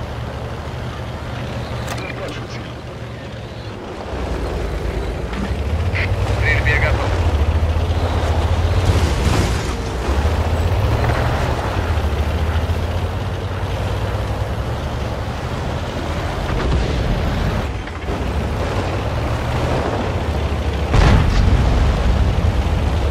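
A tank engine rumbles steadily and roars louder as the tank drives.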